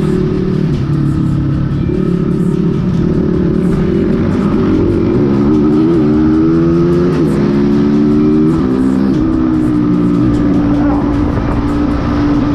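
A motorcycle engine drones up close, its pitch rising and falling with the throttle.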